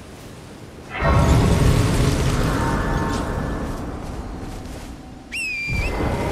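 A bright magical chime swells and slowly fades.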